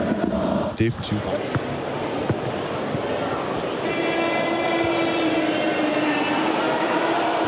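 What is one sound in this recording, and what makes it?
A large crowd roars and chants in an open stadium.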